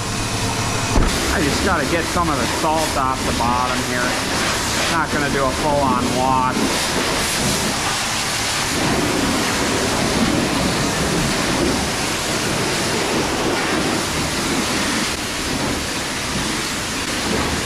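A pressure washer sprays water with a loud, steady hiss.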